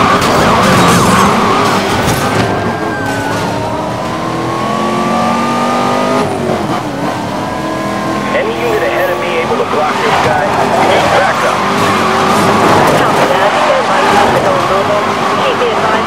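A sports car engine roars and revs up through the gears.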